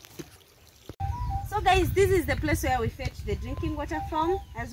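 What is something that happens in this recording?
Water pours from a cup and splashes into a pool.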